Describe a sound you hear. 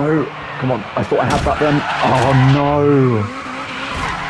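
A car crashes with a loud metallic crunch.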